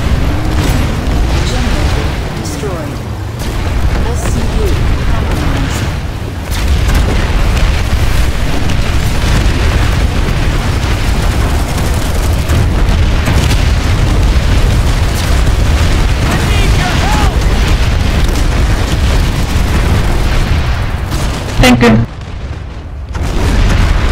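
Heavy guns fire in bursts.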